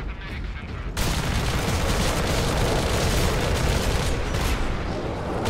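A heavy gun fires in rapid, loud bursts.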